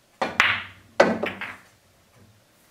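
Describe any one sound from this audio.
Billiard balls clack together and roll across the table.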